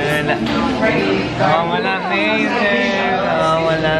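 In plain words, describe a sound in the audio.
Young women laugh and chatter close by.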